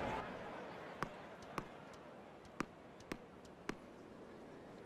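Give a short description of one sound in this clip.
A tennis ball bounces on a hard court several times.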